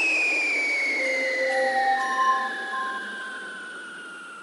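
Short bright electronic chimes ring out in quick succession.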